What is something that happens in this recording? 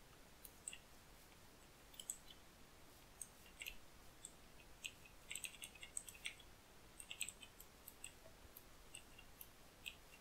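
Footsteps crunch softly on grass at a steady walking pace.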